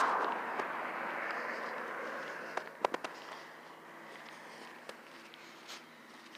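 Footsteps scuff on a paved path outdoors.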